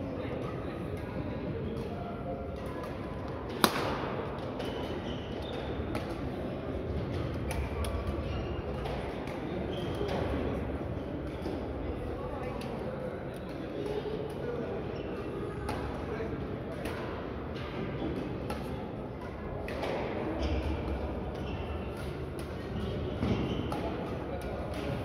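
Shuttlecocks are struck with rackets with sharp pops in a large echoing hall.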